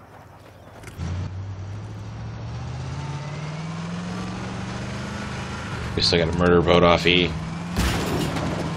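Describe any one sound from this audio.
A vehicle engine starts up, hums and slowly revs higher.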